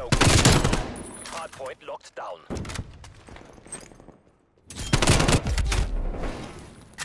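Rapid rifle gunfire crackles in short bursts.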